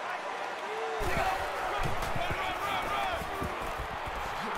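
Football players collide with dull thuds.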